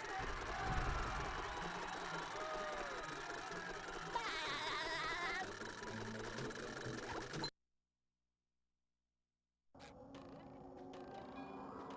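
Eerie video game music plays.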